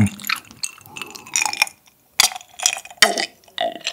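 A young man swallows a drink.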